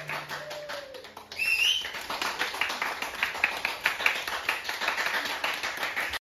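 Mallets strike wooden bars of marimbas in quick notes.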